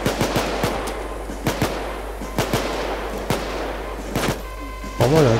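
Rifle shots fire in short, sharp bursts.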